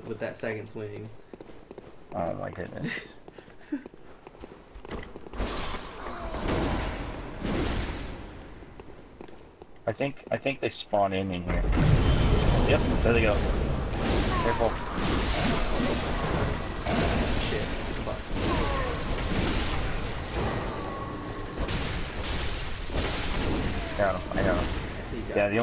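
A blade swings and slashes through the air.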